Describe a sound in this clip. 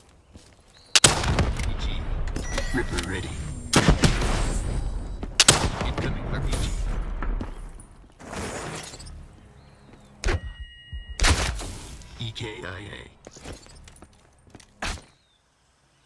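A gun fires in loud, sharp bursts.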